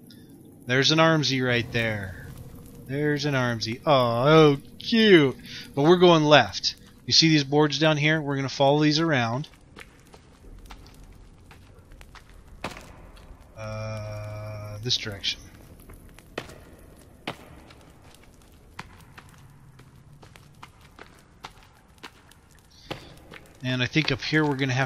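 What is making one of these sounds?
A torch fire crackles softly.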